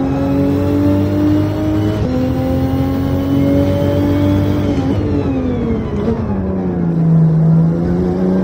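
A racing car engine roars loudly, shifting up once and then dropping in pitch as the car slows.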